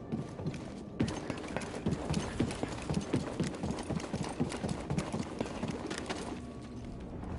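Footsteps clang quickly on a metal grating.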